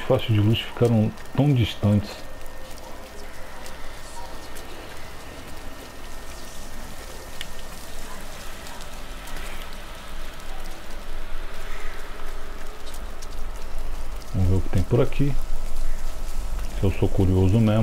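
Footsteps patter on wet stone.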